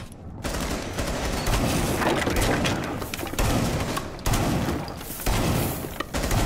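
A rifle fires loud shots in short bursts.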